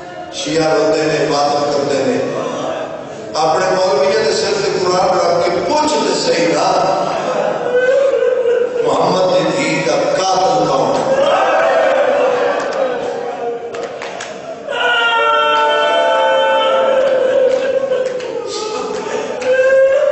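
A young man recites and chants passionately into a microphone, heard through a loudspeaker.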